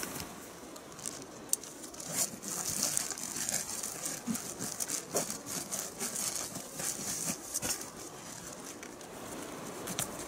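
A pack's fabric rustles as it is handled.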